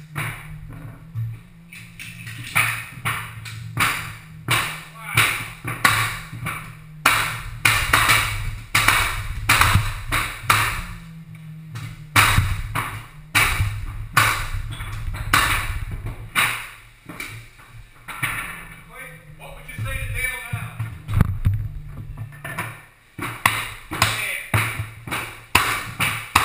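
A pneumatic nail gun fires nails into a wooden floor in quick bursts.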